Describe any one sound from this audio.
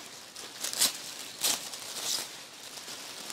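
A plastic wrapper crinkles as a garment is pulled out.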